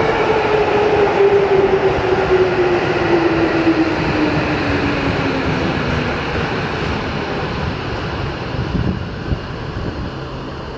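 Train wheels squeal and clack on the rails.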